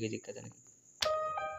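A doorbell rings loudly.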